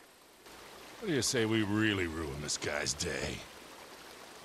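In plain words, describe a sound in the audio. An older man speaks in a low, relaxed voice.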